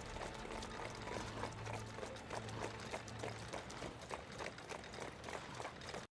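A horse-drawn carriage clatters and clops along a cobbled street.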